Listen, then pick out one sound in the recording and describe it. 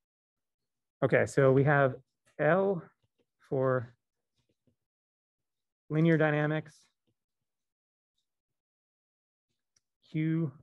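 A man speaks calmly through an online call microphone, in short phrases with pauses.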